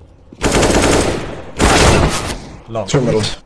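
Gunfire bursts loudly in rapid volleys.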